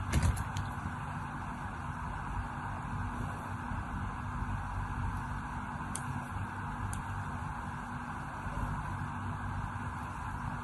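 A blade scrapes and shaves thin curls from a soft bar of soap.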